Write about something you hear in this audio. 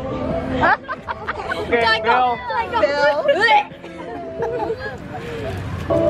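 A young girl giggles loudly.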